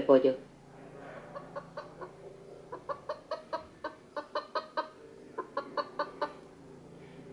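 A hen clucks repeatedly through a small loudspeaker.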